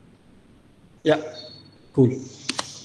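A man speaks calmly through an online call.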